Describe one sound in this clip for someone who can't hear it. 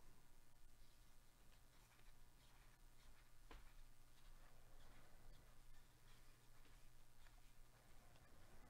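Gloved hands shuffle through a stack of trading cards, with soft rustling and flicking.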